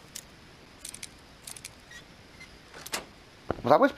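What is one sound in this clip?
A lockpick scrapes and clicks inside a metal lock.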